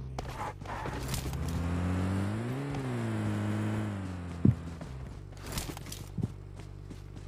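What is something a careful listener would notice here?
A motorcycle engine revs up and down.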